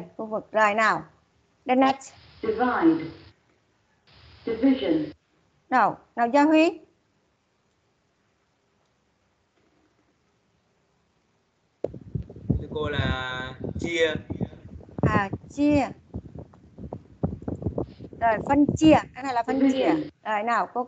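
A woman speaks calmly through an online call, pausing now and then.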